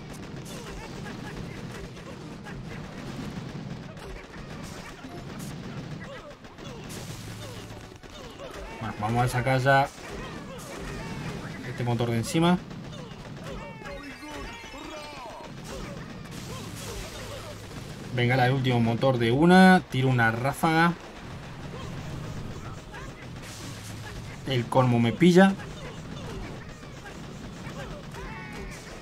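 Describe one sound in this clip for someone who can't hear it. Gunfire and explosions crackle from a battle game.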